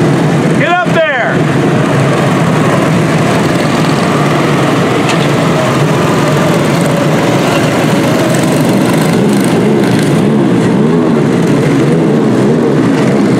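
Small racing kart engines buzz and whine loudly as they race past close by.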